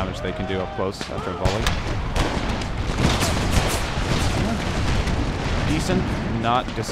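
Musket shots crackle and pop in ragged volleys.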